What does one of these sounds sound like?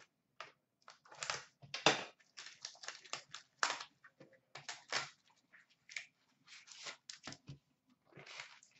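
Plastic wrapping crinkles and tears in short bursts.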